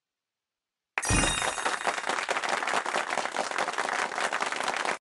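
A party popper bursts and confetti rustles down.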